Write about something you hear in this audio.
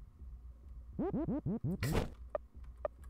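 A rapid series of falling electronic chirps plays.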